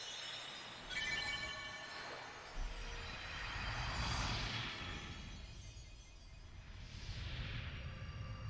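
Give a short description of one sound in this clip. Magical shimmering whooshes swell and fade.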